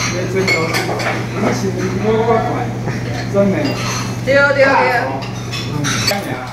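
Several women and men chat and laugh together close by.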